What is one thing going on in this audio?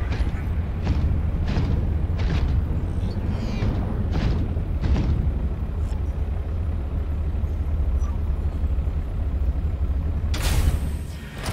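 A low engine hum drones steadily.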